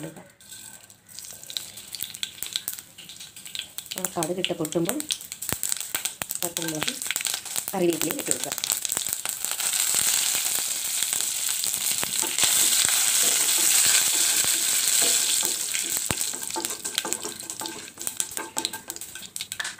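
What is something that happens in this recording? Mustard seeds pop and crackle in hot oil.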